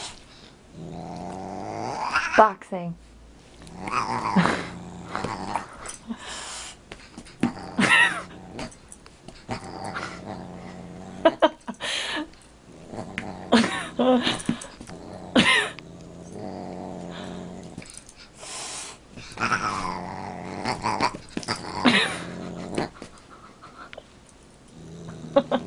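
A dog growls and grumbles playfully in short bursts.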